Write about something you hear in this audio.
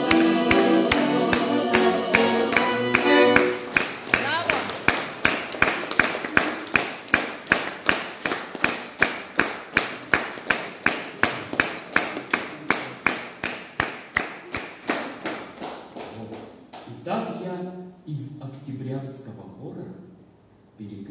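An accordion plays a lively tune with a steady beat in an echoing room.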